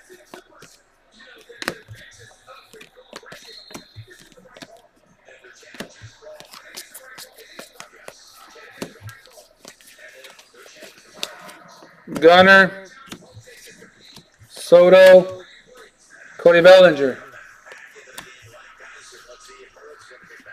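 Trading cards rustle and slide against each other as they are flipped through.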